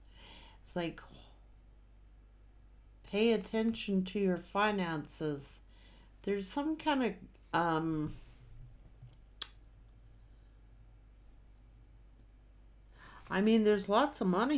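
A middle-aged woman speaks calmly and closely into a microphone.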